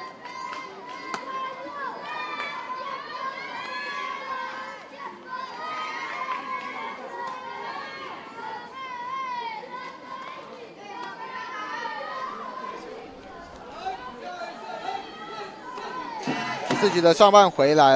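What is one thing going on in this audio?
Young boys shout and chant outdoors.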